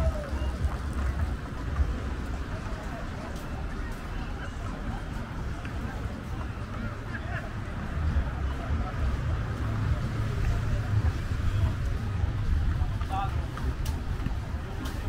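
Men and women chatter faintly in the distance.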